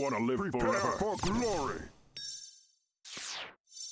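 A crackling magic beam zaps in short bursts.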